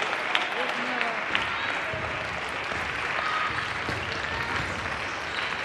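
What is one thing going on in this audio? Table tennis balls click against paddles and tables nearby.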